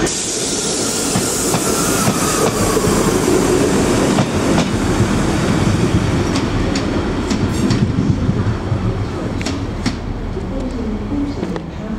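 Train wheels clatter and click over rail joints.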